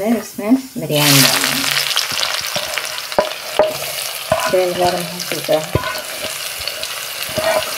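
Onions drop into hot oil and sizzle loudly.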